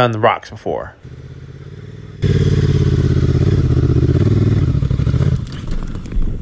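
A motorcycle engine idles steadily.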